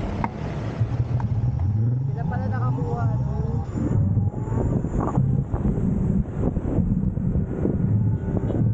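A motorcycle engine hums and revs while riding along a road.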